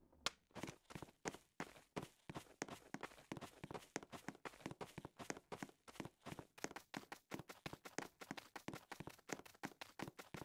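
Footsteps crunch quickly and steadily on sand.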